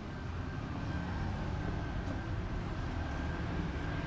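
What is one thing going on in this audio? Footsteps tread on paving stones.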